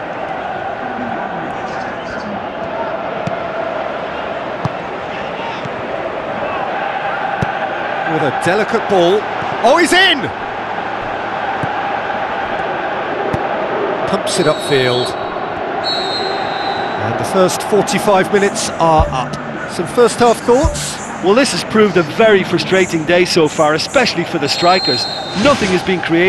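A large crowd roars steadily in an echoing stadium.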